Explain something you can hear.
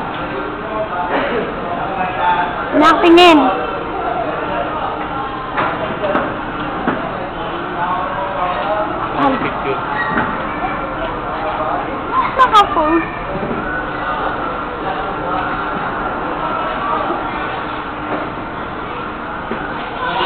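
Children chatter and shriek nearby.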